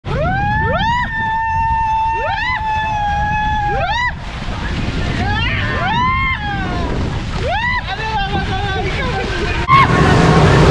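Water rushes and splashes down a slide.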